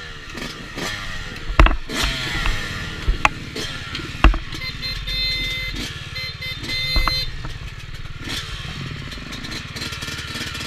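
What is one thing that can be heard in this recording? A dirt bike engine revs and putters close by throughout.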